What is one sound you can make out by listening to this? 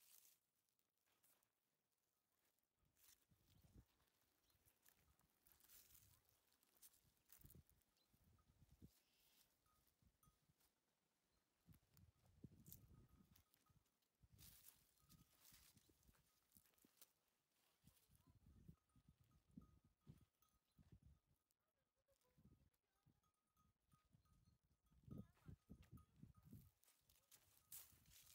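Footsteps crunch on dry leaves and soil outdoors.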